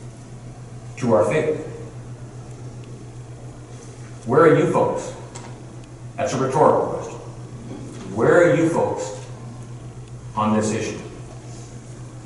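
A man speaks with animation through a microphone in a large echoing hall, pausing between phrases.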